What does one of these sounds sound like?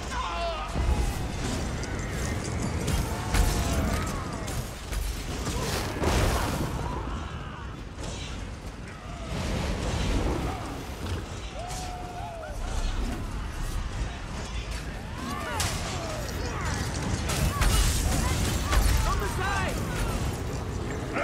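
Weapons strike and thud against creatures.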